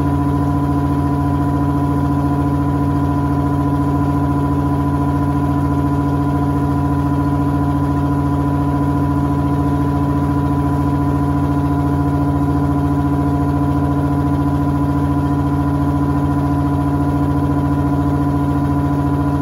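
A washing machine drum spins fast with a steady, loud hum.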